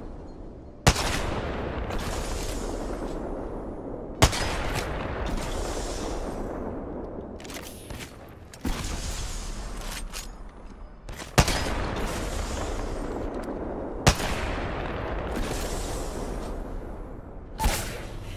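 A sniper rifle fires single loud shots that echo and roll away.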